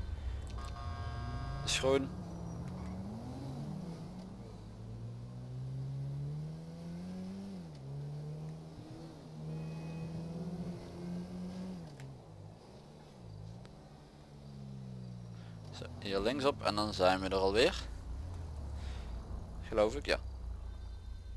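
A van engine hums and revs as the vehicle drives.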